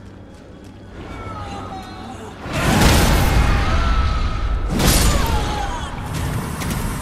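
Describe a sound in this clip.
A fleshy creature shrieks and gurgles.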